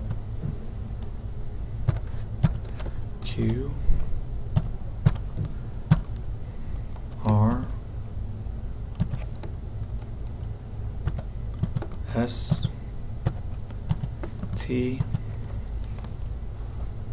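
Keys clack on a computer keyboard in quick bursts.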